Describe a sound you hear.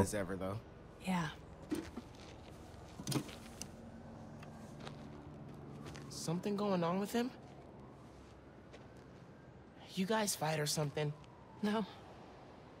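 A young woman answers briefly and quietly.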